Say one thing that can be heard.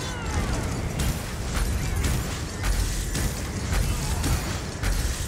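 Blows strike with sharp impacts.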